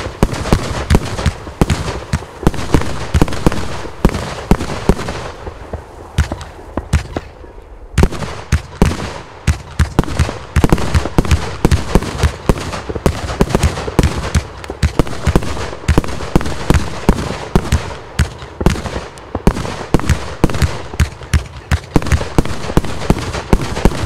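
Fireworks shells burst with sharp bangs and crackles.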